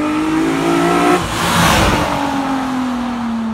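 A car roars past close by.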